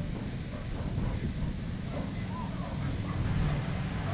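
A car drives slowly past nearby.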